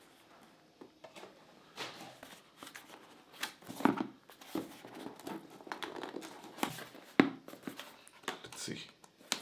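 Cardboard scrapes and rustles as a box is opened by hand.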